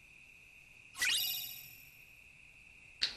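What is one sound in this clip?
A bright chime rings out once and fades.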